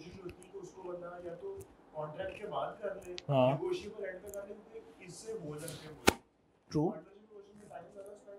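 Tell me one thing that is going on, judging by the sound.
A young man speaks calmly into a microphone, lecturing.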